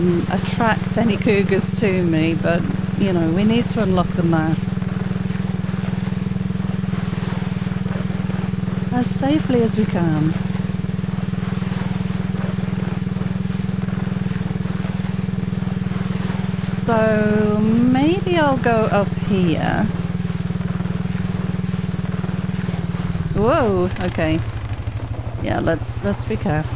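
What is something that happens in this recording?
A quad bike engine drones steadily as it climbs, then drops to a lower idle.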